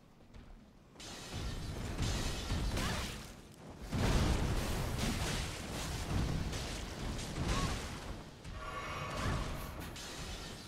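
Swords clash and slash in heavy combat.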